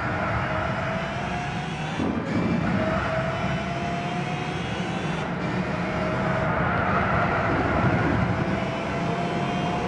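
A racing car engine revs hard, rising in pitch and dropping briefly with each gear change.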